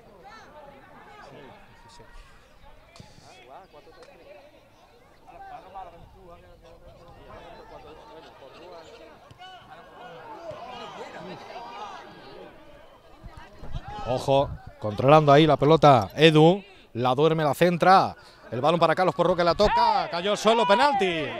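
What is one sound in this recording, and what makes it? Football players call out to each other in the distance outdoors.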